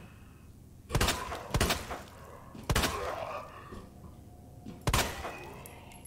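A handgun fires several sharp shots that echo down a corridor.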